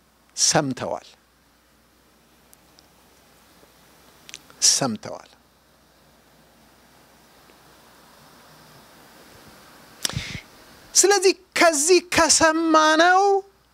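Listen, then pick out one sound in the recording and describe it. A man preaches with animation into a microphone, in short bursts with long pauses.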